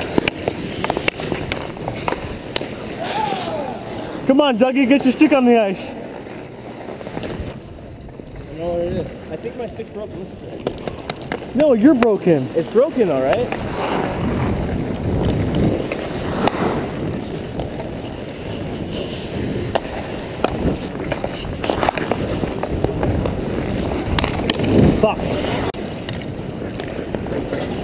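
Ice skates scrape and carve across the ice close by.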